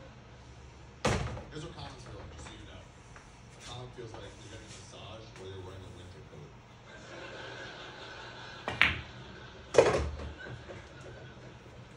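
Billiard balls knock together and roll across the table.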